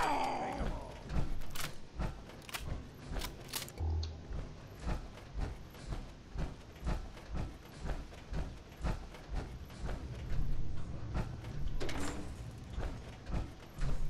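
Heavy metal footsteps clank steadily on a hard floor.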